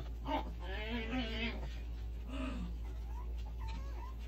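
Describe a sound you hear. A puppy chews wet food.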